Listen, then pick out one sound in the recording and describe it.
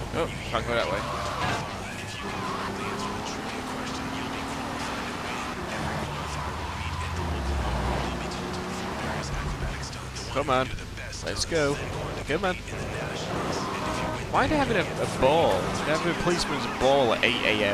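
A car engine hums and revs as a car drives along a street.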